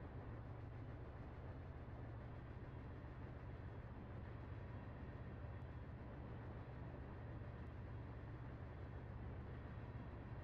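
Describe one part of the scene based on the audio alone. A freight train rumbles steadily across a steel bridge, its wheels clattering on the rails.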